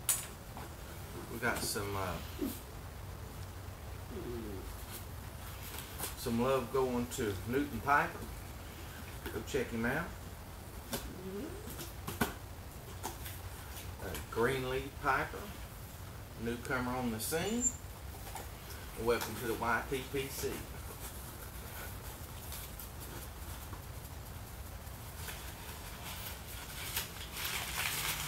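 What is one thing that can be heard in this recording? Cardboard rustles and tape tears as a box is opened.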